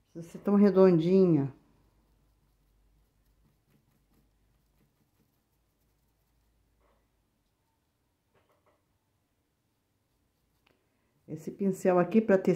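A brush dabs softly on cloth.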